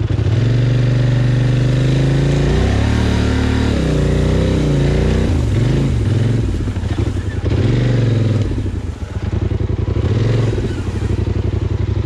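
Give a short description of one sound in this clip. Tall grass swishes and brushes against a vehicle.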